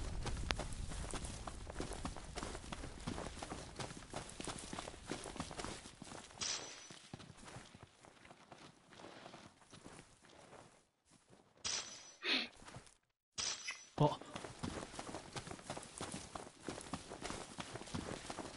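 Footsteps run through grass.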